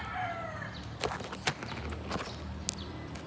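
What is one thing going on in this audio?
Leaves rustle and brush close by.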